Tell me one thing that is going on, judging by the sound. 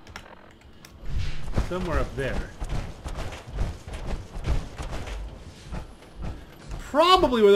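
Heavy armored footsteps thud steadily on the ground.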